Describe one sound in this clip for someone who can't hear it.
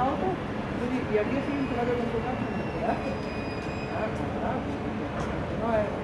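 Several people talk at a distance outdoors.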